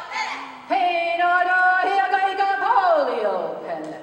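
A woman chants in a long, sliding voice through a microphone.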